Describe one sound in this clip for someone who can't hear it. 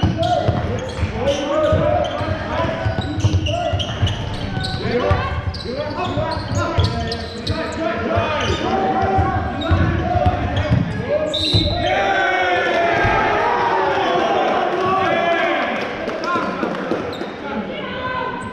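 Players shout and call out to each other across the hall.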